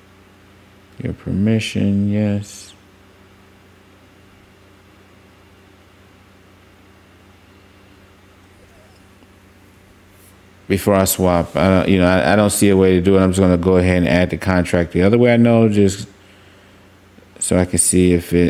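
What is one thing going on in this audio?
A man talks calmly into a close microphone, pausing often.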